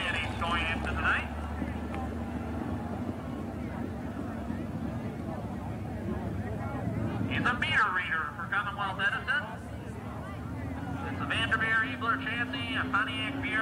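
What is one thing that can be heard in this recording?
A race car engine drones steadily as the car circles the track.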